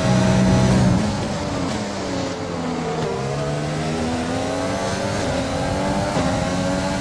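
A racing car engine drops in pitch as the car brakes and downshifts, then climbs again.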